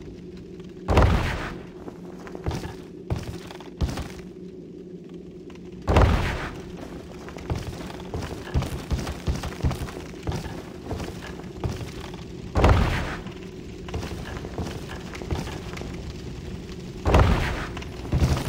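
A heavy body lands with a loud thud on wooden planks.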